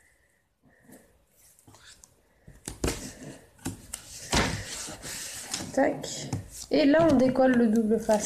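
A hand taps and slides on a card on a table.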